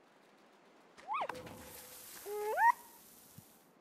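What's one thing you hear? A young fox cub squeaks in high, sliding cries.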